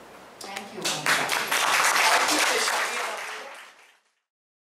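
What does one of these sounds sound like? An audience applauds in a hall and the applause fades.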